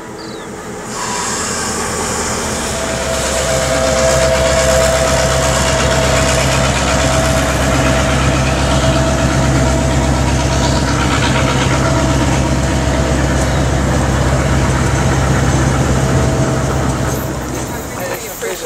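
Train wheels clatter and squeal on the rails.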